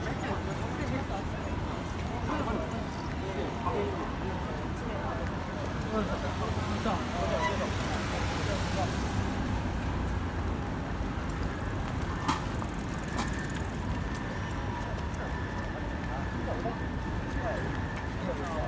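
City traffic hums steadily outdoors.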